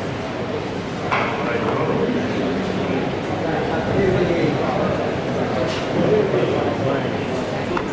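A bowling ball rolls along a hard court.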